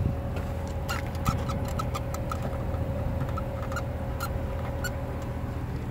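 A plastic door panel clicks and creaks under a hand.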